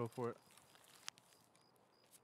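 A short click sounds once.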